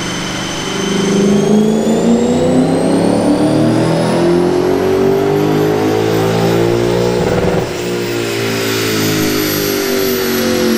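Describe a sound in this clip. Dyno rollers whine, rising in pitch as the wheels spin faster.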